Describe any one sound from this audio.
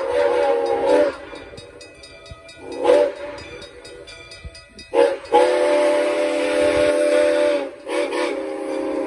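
A steam locomotive's whistle blows in long and short blasts.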